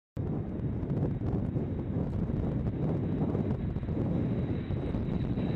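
Jet engines roar loudly as a large plane takes off.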